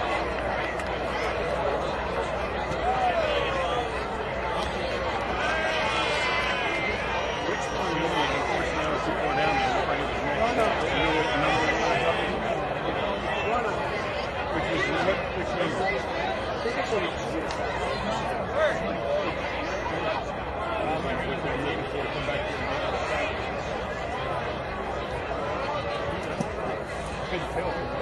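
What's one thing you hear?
A large crowd chatters and murmurs outdoors nearby.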